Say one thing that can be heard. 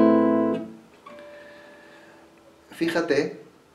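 Single guitar notes are plucked softly.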